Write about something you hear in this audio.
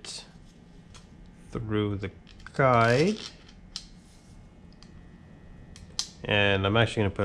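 Small metal parts click and tap together.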